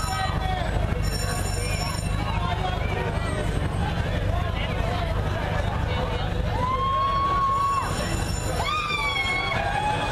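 A crowd of men and women cheer and shout nearby outdoors.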